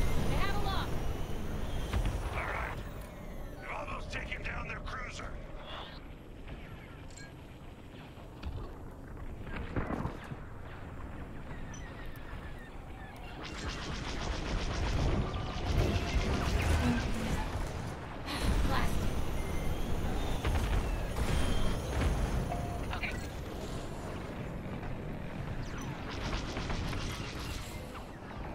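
A spacecraft engine roars steadily.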